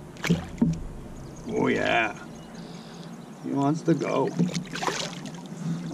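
Water splashes as a fish is handled at the surface.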